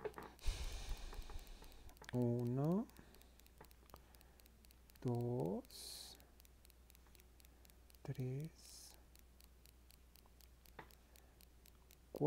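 A crochet hook softly clicks and yarn rustles as stitches are pulled through.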